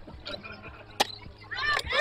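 A metal bat cracks against a baseball.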